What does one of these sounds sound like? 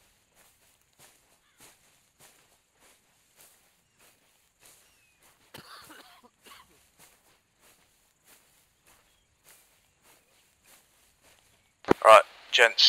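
Footsteps swish through dry grass at a steady walking pace.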